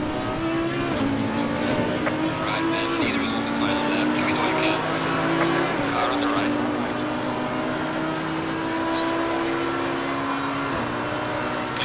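A racing car gearbox shifts up, dropping the engine's pitch.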